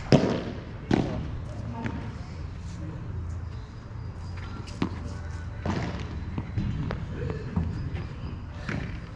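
Padel rackets strike a ball with sharp pops, echoing off the court walls.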